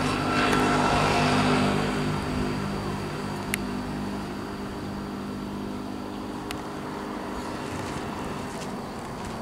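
A parked diesel bus engine idles and winds down.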